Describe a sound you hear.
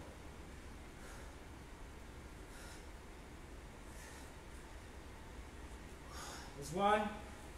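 A man breathes out heavily in short puffs.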